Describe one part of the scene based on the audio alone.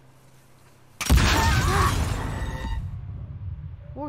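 A loud explosion bursts and rumbles away.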